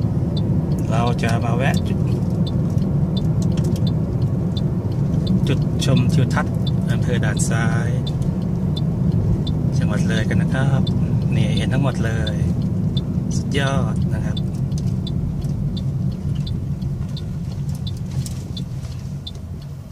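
A car engine hums steadily with road rumble from inside the car, easing off toward the end.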